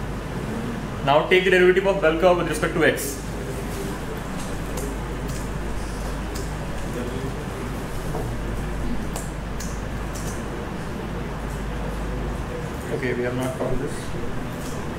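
A man speaks into a microphone in a large room, in short bursts.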